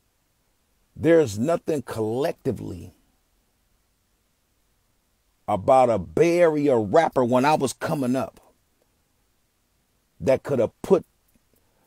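A man sings with feeling close by, in short phrases.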